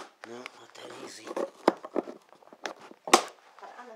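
A blade scrapes and slices through cardboard and tape, close by.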